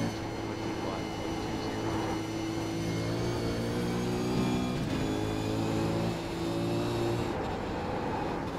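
A racing car engine roars steadily, its pitch shifting as the car shifts gears.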